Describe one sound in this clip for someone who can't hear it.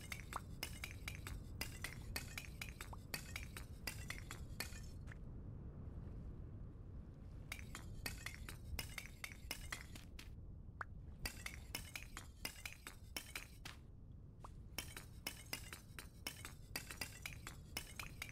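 Stone blocks crack and thud in quick repeated knocks.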